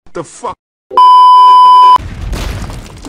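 A loud, steady test tone beeps.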